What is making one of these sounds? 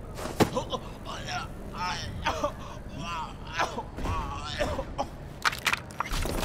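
A man gasps and grunts while being choked.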